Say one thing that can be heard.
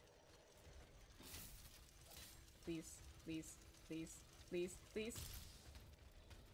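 A fiery magical burst whooshes and crackles.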